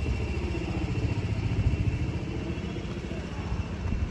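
Footsteps walk on cobblestones nearby.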